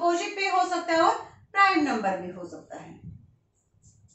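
A woman speaks calmly and clearly into a nearby microphone.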